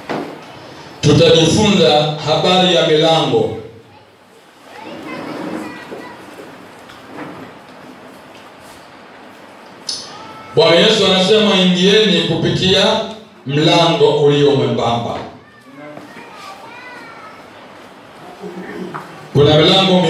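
A man speaks calmly and closely into a microphone.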